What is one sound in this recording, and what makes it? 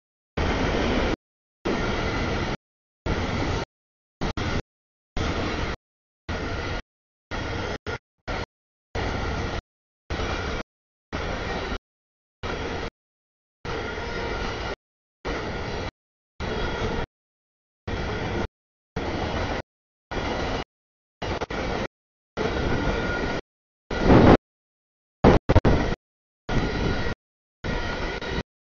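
A freight train rumbles past close by, heard in broken bursts.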